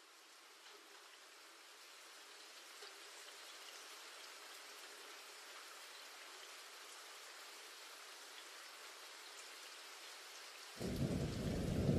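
Raindrops patter on puddles of water.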